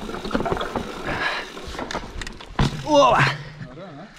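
Bicycle tyres rattle over wooden bridge planks.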